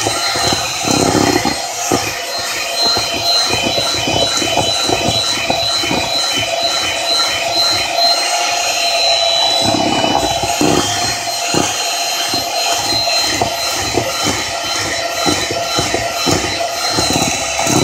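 Mixer beaters knock against the side of a plastic bowl.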